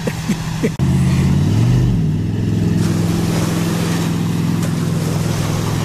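Water splashes and churns against a boat's hull.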